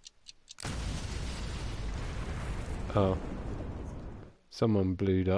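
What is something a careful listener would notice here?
A loud explosion rumbles and roars.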